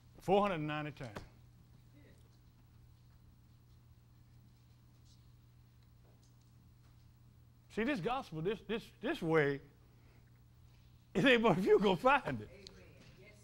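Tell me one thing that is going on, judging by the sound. An elderly man preaches with feeling through a microphone, in bursts with long pauses.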